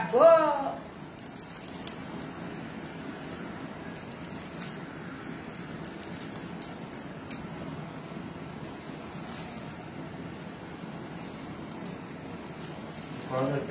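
A blowtorch hisses steadily.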